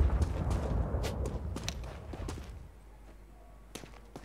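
Footsteps crunch on dusty ground.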